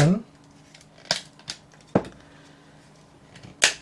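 A small screwdriver pries at a plastic case with sharp clicks.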